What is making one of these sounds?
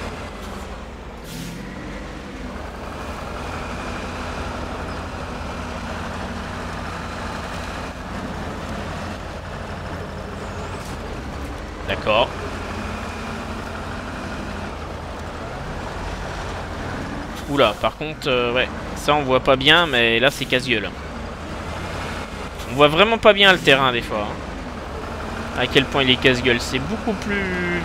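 Tyres crunch over rough ground.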